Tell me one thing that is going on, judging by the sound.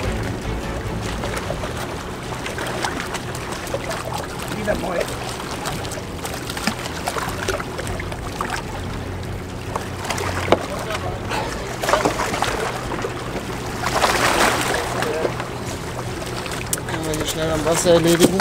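Water laps against rocks at the shore.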